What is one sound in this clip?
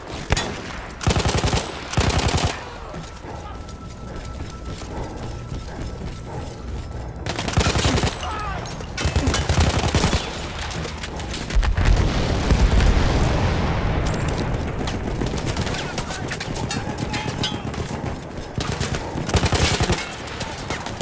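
A machine gun fires rapid bursts close by.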